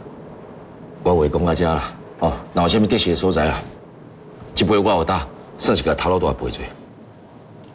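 A younger man speaks calmly and politely, close by.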